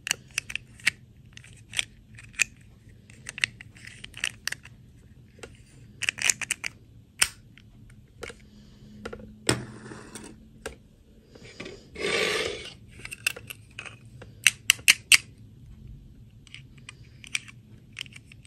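Small plastic toy parts click and tap as they are handled.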